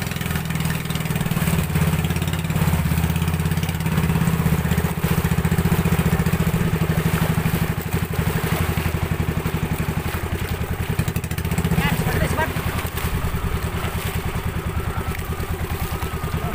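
A boat's engine drones steadily.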